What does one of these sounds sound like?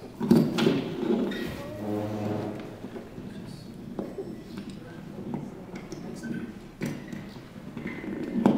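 A young boy speaks into a microphone.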